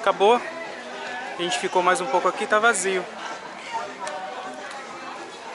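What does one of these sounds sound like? A crowd of men and women chatters in the background outdoors.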